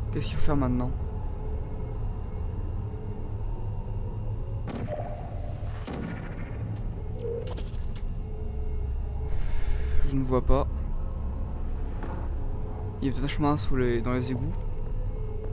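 A game's energy gun fires several times with short, warbling electronic zaps.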